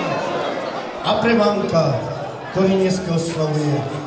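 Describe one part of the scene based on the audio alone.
A man sings loudly through a microphone over loudspeakers.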